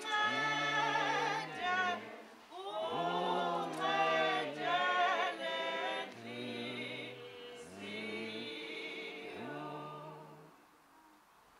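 A group of women sings a slow, mournful hymn.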